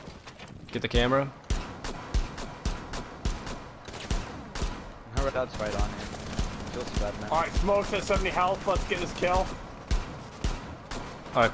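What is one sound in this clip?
Gunshots from a rifle fire in short bursts.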